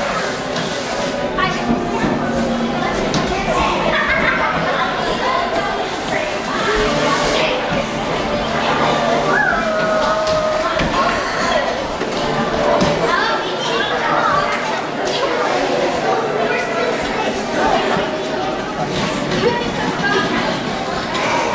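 Footsteps thud across a wooden stage.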